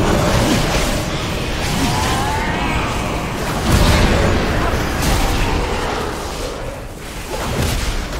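Game spell effects whoosh and crackle with battle sounds.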